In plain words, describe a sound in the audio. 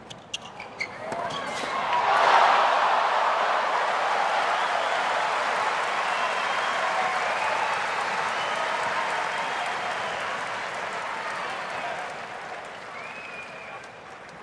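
A large crowd cheers and applauds loudly, then fades.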